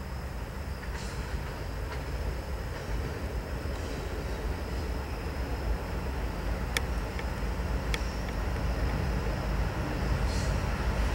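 Heavy freight cars clatter over the rails.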